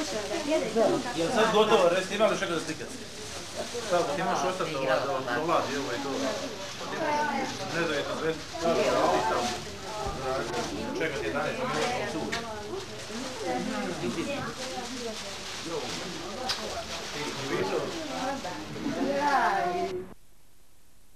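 A crowd of children and adults chatter and call out close by.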